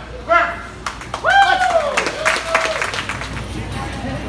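A crowd claps and cheers loudly.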